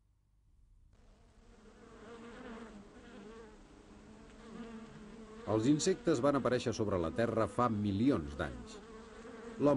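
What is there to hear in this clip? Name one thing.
Bees buzz steadily around a hive.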